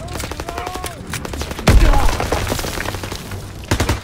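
A gun is reloaded with a metallic clack.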